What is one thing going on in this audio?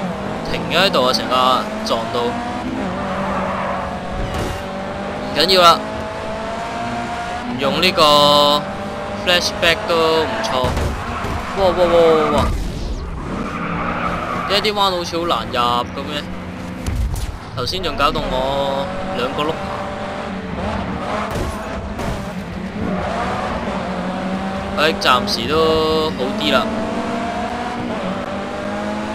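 A racing car engine roars, revving up and dropping with each gear change.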